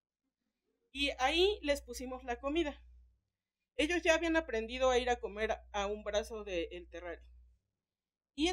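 A man lectures through a microphone and loudspeakers in a large hall.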